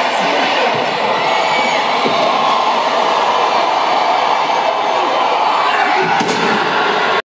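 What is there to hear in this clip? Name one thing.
A large crowd cheers and roars loudly in a big echoing arena.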